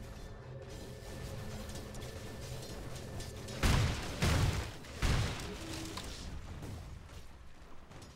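Weapons clash and thud in a game fight.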